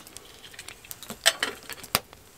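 A metal lid clinks on a kettle.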